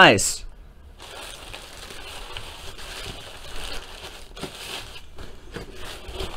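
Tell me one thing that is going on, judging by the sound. Plastic wrapping crinkles as hands handle it.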